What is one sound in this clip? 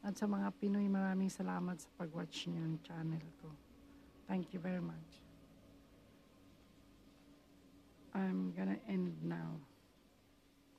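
An elderly woman speaks calmly close to the microphone.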